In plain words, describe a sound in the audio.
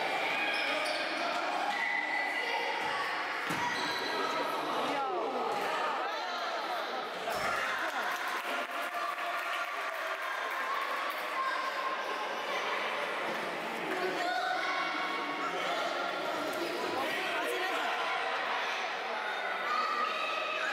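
Children shout and call out across an echoing sports hall.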